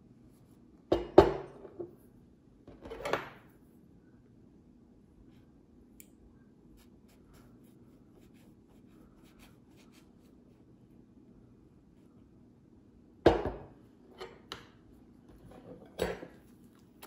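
A knife and fork clink against a ceramic plate.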